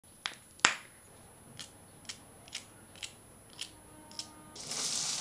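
Crisp okra pods snap between fingers.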